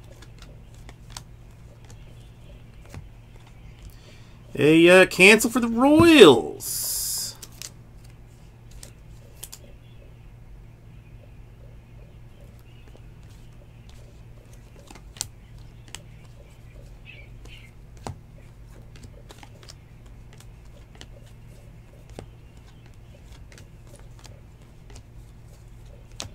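Trading cards flick and rustle softly as they are sorted by hand.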